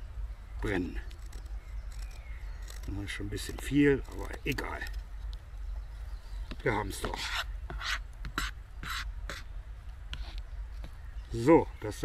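A knife blade scrapes and shaves dry wood.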